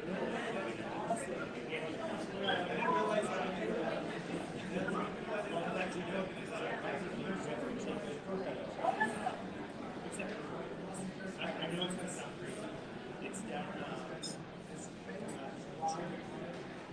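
Several men chat at a table in a murmuring, echoing room.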